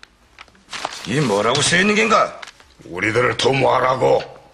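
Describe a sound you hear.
A man speaks in a deep, firm voice.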